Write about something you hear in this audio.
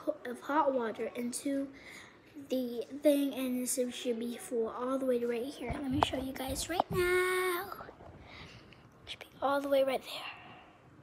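A young girl talks close up with animation.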